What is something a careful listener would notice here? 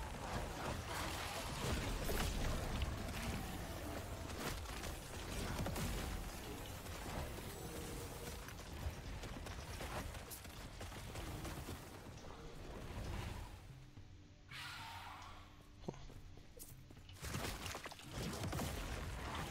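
Game spells crash and whoosh in rapid bursts.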